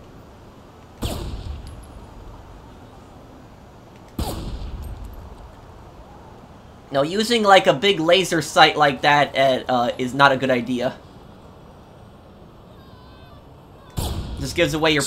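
A sniper rifle fires with a sharp, echoing crack.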